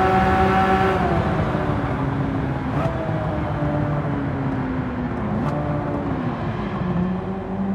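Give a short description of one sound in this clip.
A car engine drops in pitch as the car slows down.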